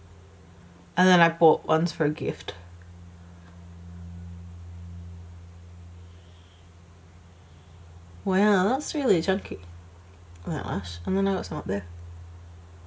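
A young woman speaks calmly and close to a microphone, in short bursts.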